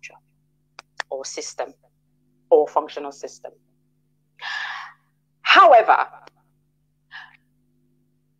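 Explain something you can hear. A woman speaks in short bursts.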